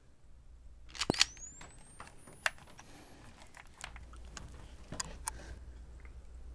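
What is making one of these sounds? A machine clicks and rattles up close.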